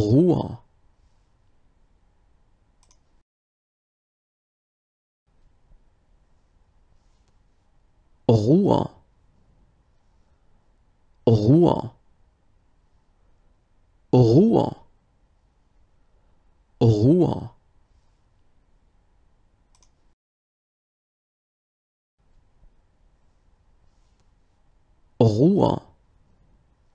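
A middle-aged man close to a microphone says a single word slowly and clearly, with long pauses between.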